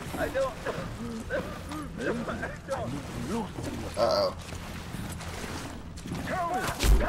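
A man pleads weakly, close by.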